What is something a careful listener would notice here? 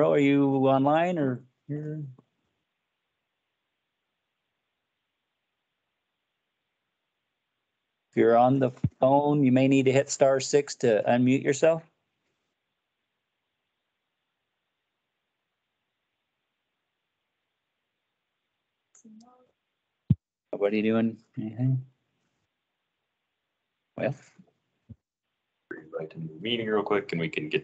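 A man speaks calmly over an online call, with long pauses.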